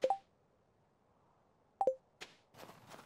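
A soft game chime rings twice.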